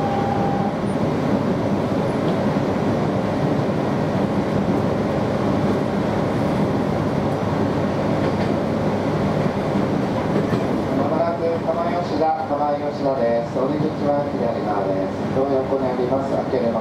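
An electric train rumbles along the track, heard from inside a carriage.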